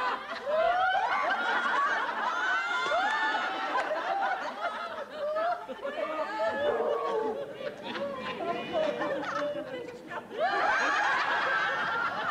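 A young woman shouts and sings loudly outdoors.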